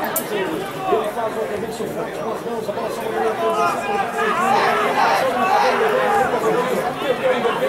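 A crowd cheers and shouts from stadium stands.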